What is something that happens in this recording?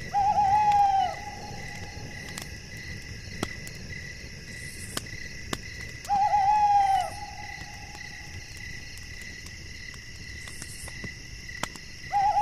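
An owl hoots in long, wavering calls.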